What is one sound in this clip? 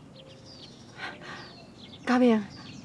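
A young woman speaks sharply nearby.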